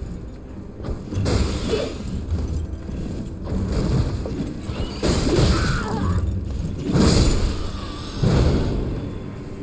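Swords clash and strike with heavy impacts.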